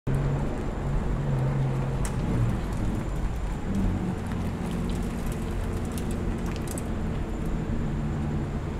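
A sports car engine rumbles deeply as the car rolls slowly closer.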